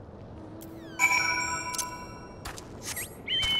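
A bright chime rings out once.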